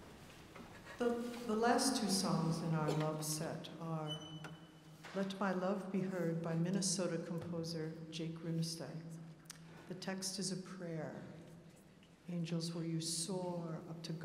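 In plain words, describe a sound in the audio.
An orchestra's strings play along with the choir.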